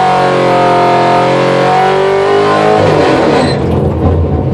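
A car engine revs loudly at high pitch, then drops away as the gear shifts.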